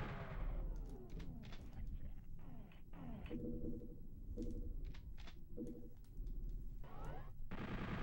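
Game gunfire bangs in quick bursts.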